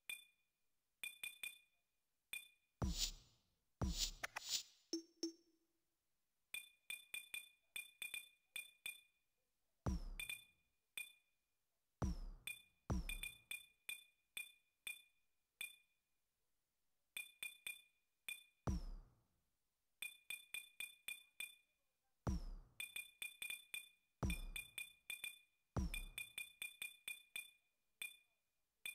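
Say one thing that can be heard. Short electronic menu blips tick in quick bursts.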